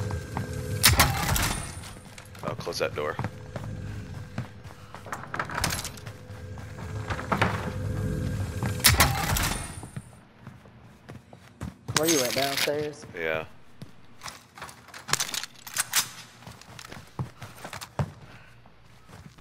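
Footsteps thud quickly across a floor.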